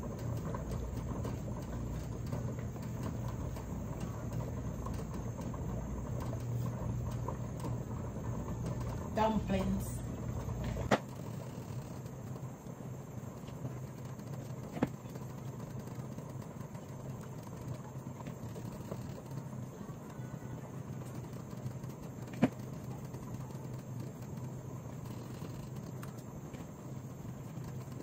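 Water boils in a pot on a stove.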